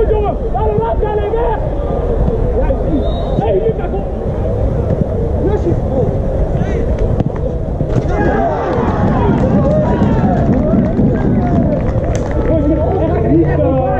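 Several men shout and call out across an open field.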